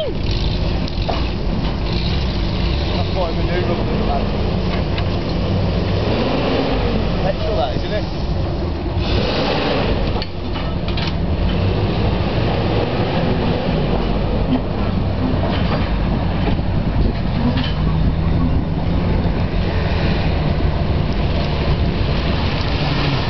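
A truck engine rumbles and labours close by.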